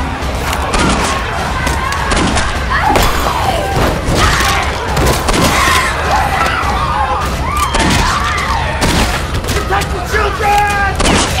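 A crowd of young men and women scream and shout in panic close by.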